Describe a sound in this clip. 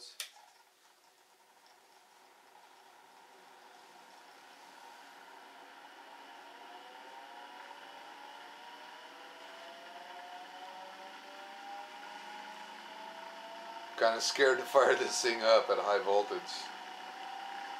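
An electric motor whirs, its pitch slowly rising as it speeds up.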